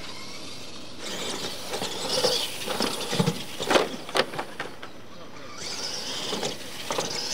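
Small electric motors of radio-controlled trucks whine as the trucks race.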